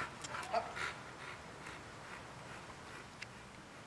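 A dog pants softly nearby.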